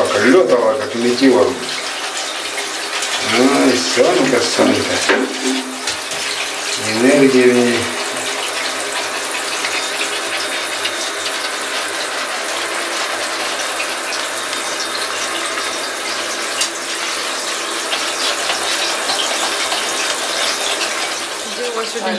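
Hands rub soapy lather through a wet dog's fur with a soft squelching.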